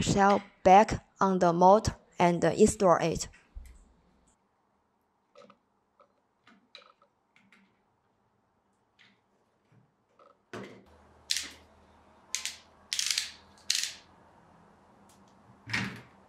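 Plastic and metal parts click and knock softly as they are fitted together.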